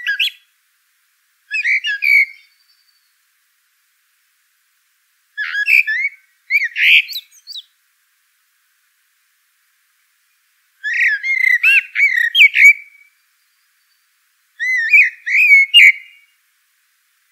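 A small bird chirps in short bursts of bright, twittering song.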